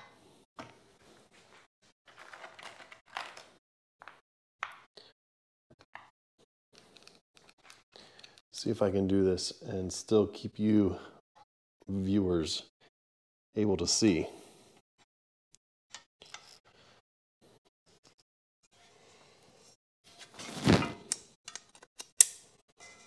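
Aluminium frame parts clink and knock as they are handled.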